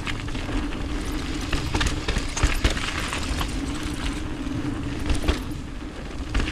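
Bike tyres roll and crunch over a dirt trail.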